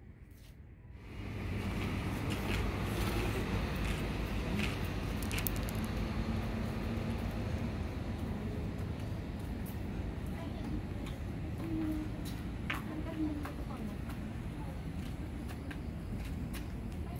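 Footsteps tap on a paved walkway outdoors.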